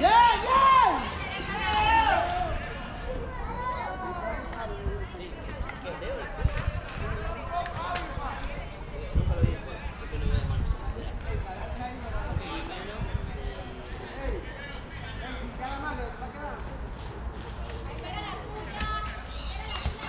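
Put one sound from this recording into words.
Young men call out and chatter outdoors across an open field.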